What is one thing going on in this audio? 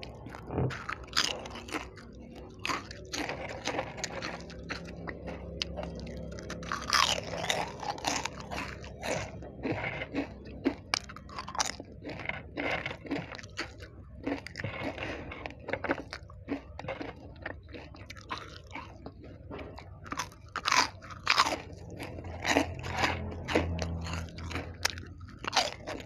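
A woman crunches crisp snacks close to a microphone.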